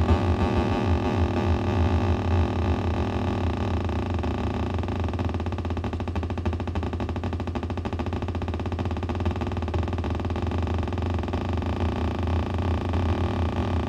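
An electronic drum kit plays a fast, busy beat from a small speaker.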